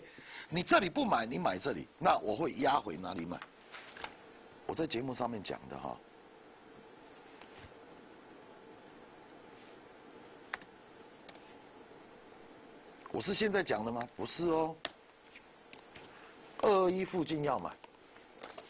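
A man speaks calmly and steadily, close to a microphone, with pauses.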